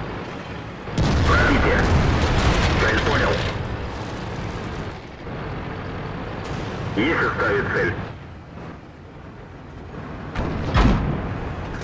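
A tank cannon fires with a loud, sudden boom.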